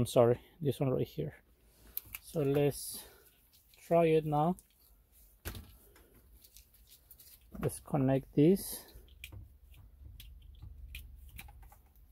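Plastic wire connectors rustle and click softly.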